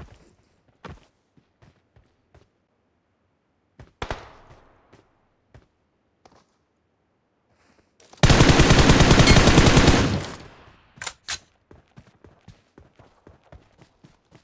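Footsteps thud quickly over grass and rock.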